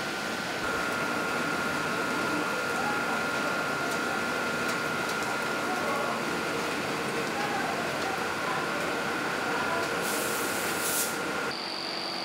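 A steady electrical tone hums from a control panel.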